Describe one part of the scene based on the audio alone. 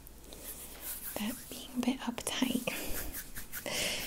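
A young woman rubs her hands together close to a microphone.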